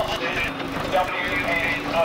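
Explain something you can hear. A steam roller engine chugs.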